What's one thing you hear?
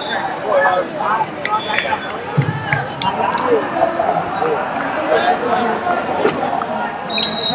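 A crowd of people chatters in a large echoing hall.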